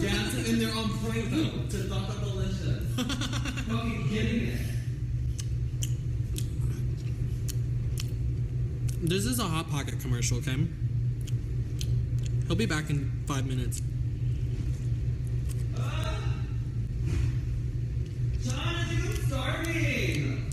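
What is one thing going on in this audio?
A young man chews food.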